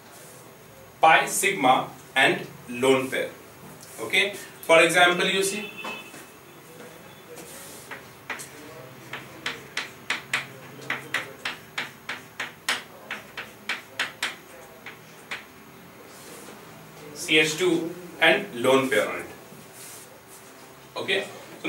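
A man speaks clearly in a lecturing tone, close by.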